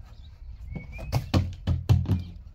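A plastic container thumps down on the ground.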